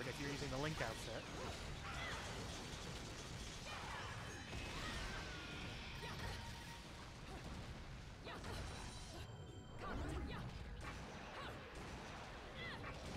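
Swords clash and slash in fast game combat.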